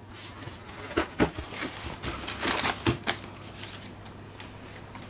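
A cardboard box flap is torn open.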